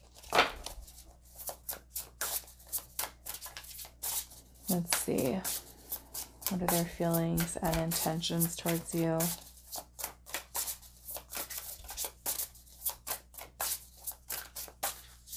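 Playing cards riffle and slap together as they are shuffled close by.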